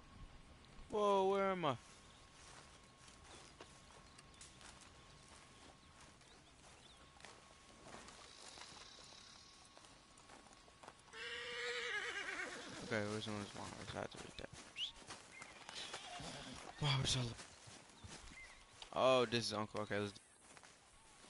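A horse whinnies loudly nearby.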